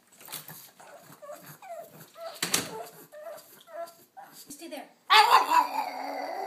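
A pug howls and whines with its head raised, close by.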